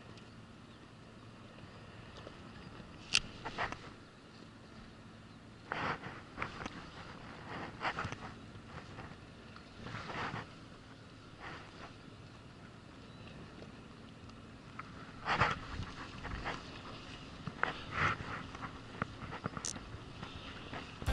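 Water laps against the side of a small boat.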